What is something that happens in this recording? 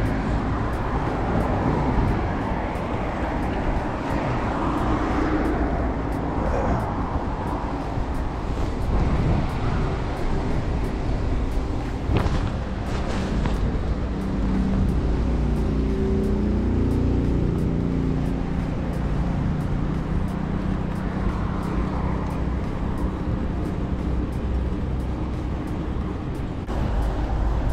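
Wind buffets the microphone steadily throughout.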